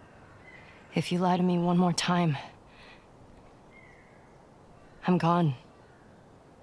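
A young woman speaks tensely and quietly.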